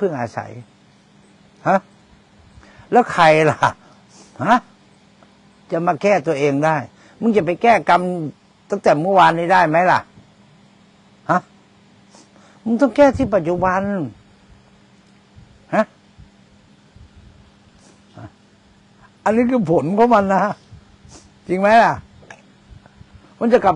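A middle-aged man speaks calmly through a clip-on microphone, in bursts with pauses.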